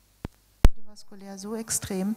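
A woman speaks calmly into a microphone, heard through loudspeakers in a large hall.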